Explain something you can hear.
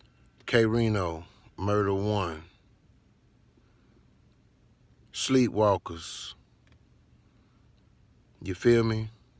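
A man speaks in short bursts close to the microphone, with pauses between them.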